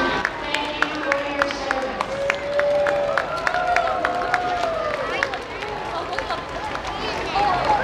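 A crowd of men, women and children cheers and calls out nearby.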